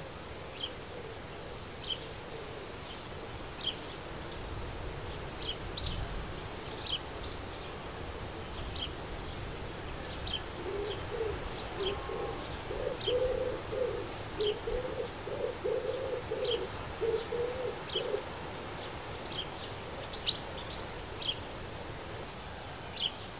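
Small birds chirp in short, sharp calls, over and over.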